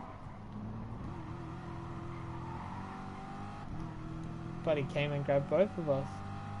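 A racing car engine drones steadily and shifts up through the gears.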